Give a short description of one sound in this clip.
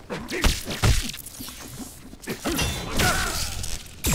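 Electric crackling bursts out in the game.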